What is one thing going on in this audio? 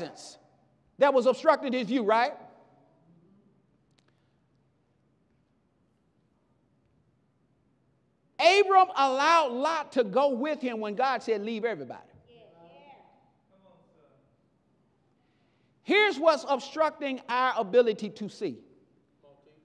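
A man preaches with animation through a microphone in an echoing hall, in loud bursts separated by pauses.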